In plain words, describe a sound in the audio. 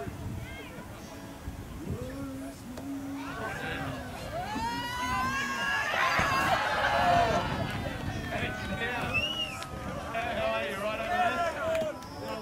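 A crowd outdoors cheers, shouts and laughs with excitement.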